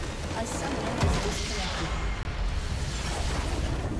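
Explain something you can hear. A large crystal shatters with a loud, booming explosion.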